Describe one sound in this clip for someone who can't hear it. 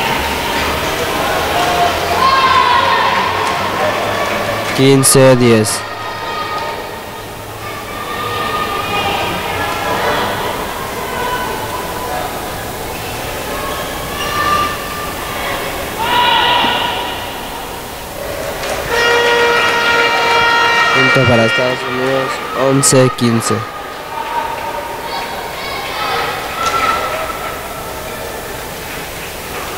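Many voices murmur and call out in a large echoing hall.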